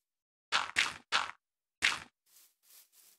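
Dirt crunches loudly as it is dug out, several times in quick succession.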